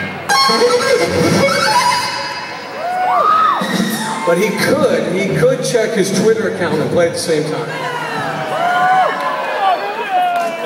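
A live band plays loud music in a big echoing space.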